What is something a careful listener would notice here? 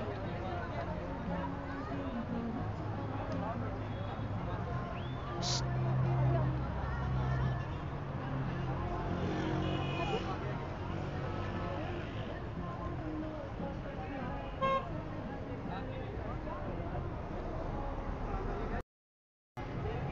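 A crowd of people chatters and murmurs nearby outdoors.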